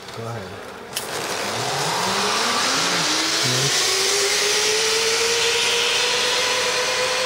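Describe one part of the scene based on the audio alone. A pulley whirs along a zip line cable, its whine rising steadily.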